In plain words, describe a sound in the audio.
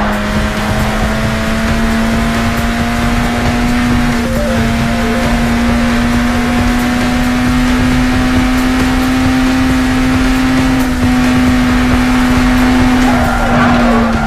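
A sports car engine hums steadily at high revs.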